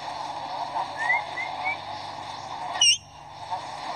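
A parrot squawks and chirps close by.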